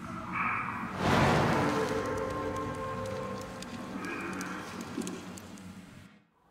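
A magical whoosh swells and slowly fades.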